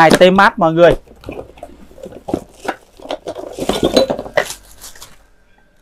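Cardboard packaging rustles and scrapes.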